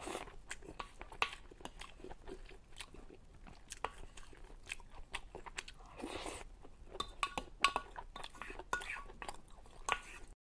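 A young woman chews and slurps food close to a microphone.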